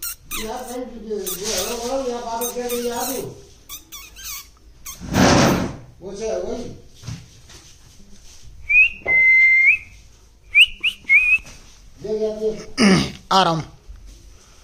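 A parrot chatters in squeaky, voice-like babble close by.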